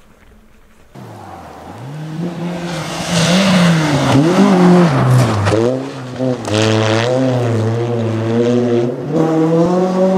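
A rally car engine revs loudly at night.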